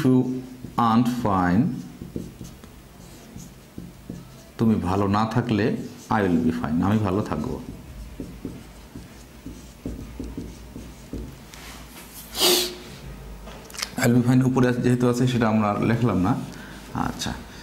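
A man speaks calmly and clearly, as if teaching, close to a microphone.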